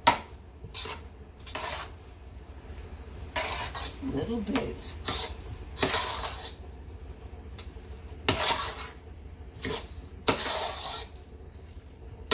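A spoon scrapes against the side of a metal pot.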